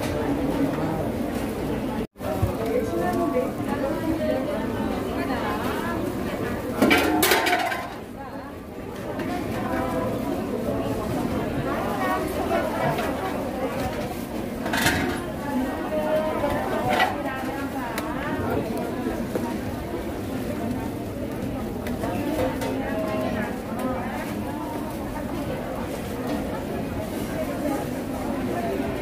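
A crowd murmurs and chatters in a busy indoor space.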